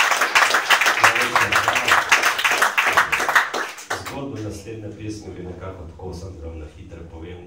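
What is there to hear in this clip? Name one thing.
A double bass plays a low line.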